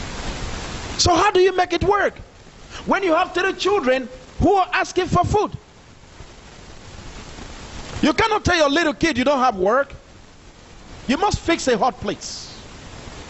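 A man speaks calmly into a microphone, heard through a loudspeaker in a room.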